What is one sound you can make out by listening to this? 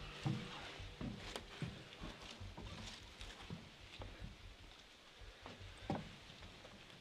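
Dry twigs rustle and crackle as a bundle is handled.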